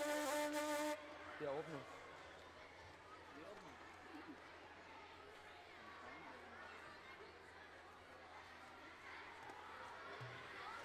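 A large audience murmurs and chatters in an echoing hall.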